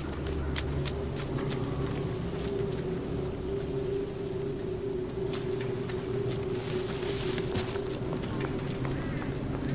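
Flames crackle nearby.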